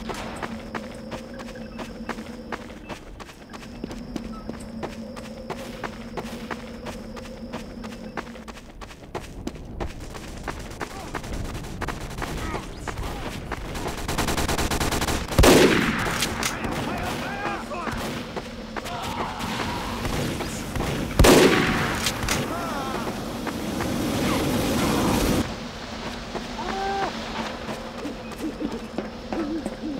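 Footsteps thud steadily on hard ground.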